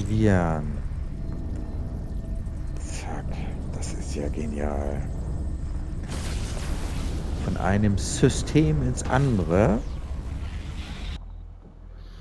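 A spaceship engine roars with a deep, rushing whoosh.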